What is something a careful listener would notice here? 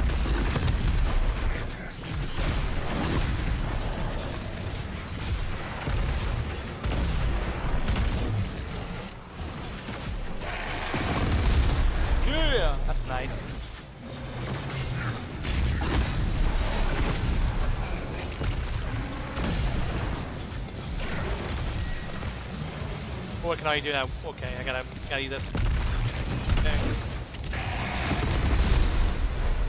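Gunfire and explosions boom repeatedly.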